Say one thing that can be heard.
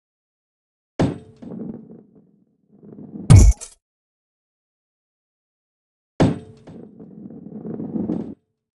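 A ball rolls across wood with a low rumble.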